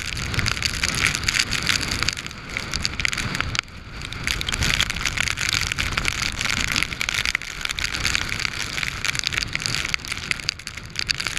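Hood fabric flaps and rustles close by in the wind.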